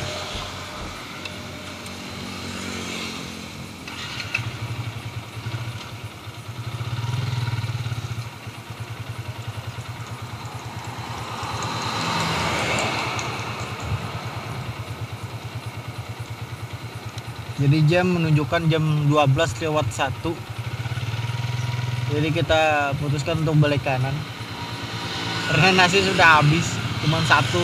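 An engine idles with a low, steady rumble.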